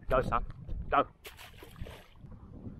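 A fish splashes into the water.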